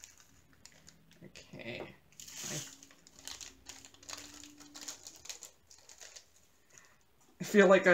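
Small beads rattle and pour into a plastic container.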